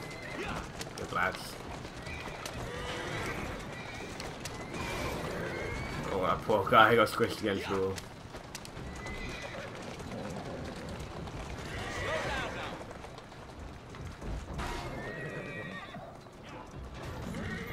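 Cart wheels rumble steadily over cobblestones.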